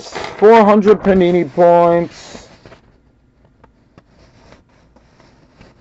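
Paper rustles as a sheet is handled.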